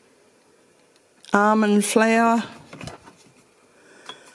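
A glass jar clinks softly against a shelf.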